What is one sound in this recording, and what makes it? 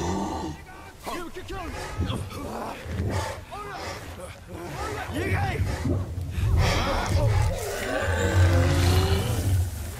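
Men shout as they run at a creature.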